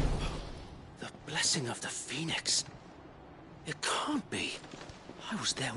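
A young man shouts in disbelief.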